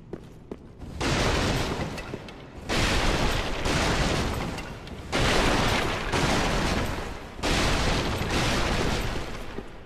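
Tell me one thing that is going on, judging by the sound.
Wooden benches smash and clatter apart in loud bursts.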